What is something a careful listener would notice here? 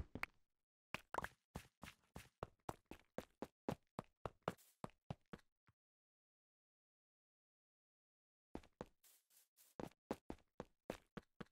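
Footsteps patter in a video game.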